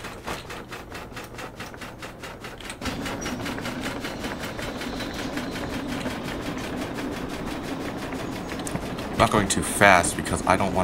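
Train wheels rumble along a track.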